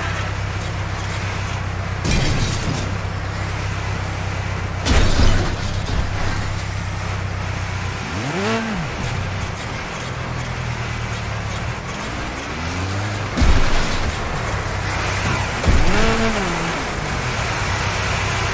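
A toy car's engine hums steadily and revs up and down.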